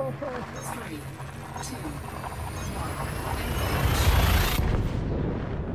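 A spaceship's jump drive charges and roars, swelling to a rushing peak before cutting off.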